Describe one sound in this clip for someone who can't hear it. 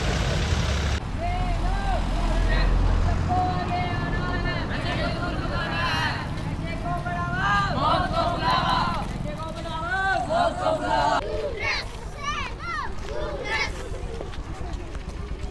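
A crowd of young people chant slogans outdoors.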